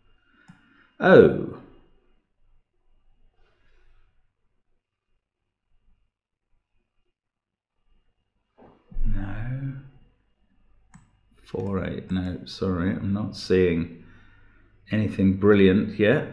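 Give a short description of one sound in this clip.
An elderly man speaks calmly and thoughtfully into a close microphone, with long pauses.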